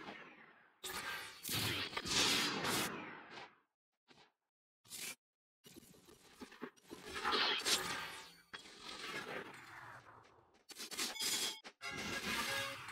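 Bright magical blasts whoosh and crackle in bursts.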